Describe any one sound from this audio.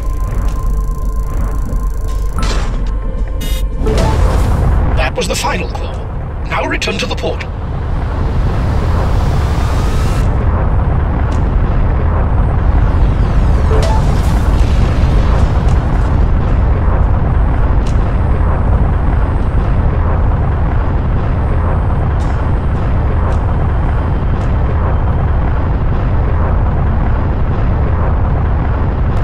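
A spacecraft engine roars with a deep steady rumble.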